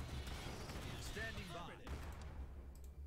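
Gunfire and a blast rumble in a battle.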